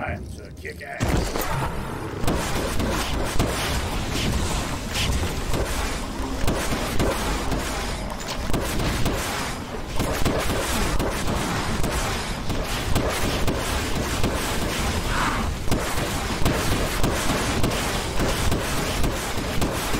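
Rapid gunfire from a video game rattles on.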